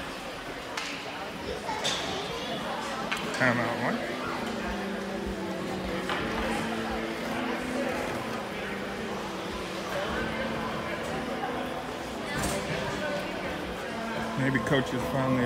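A crowd of spectators murmurs in a large echoing arena.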